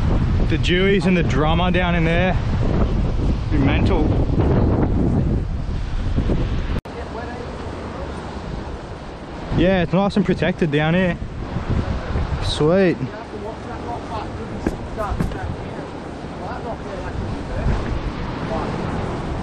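Waves crash and wash against rocks.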